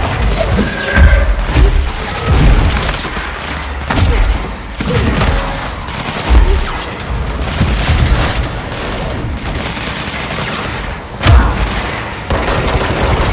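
Gunshots and blasts boom in quick bursts.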